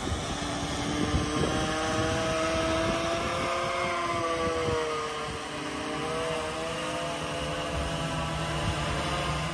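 A small propeller aircraft drones loudly overhead, its pitch slowly wavering.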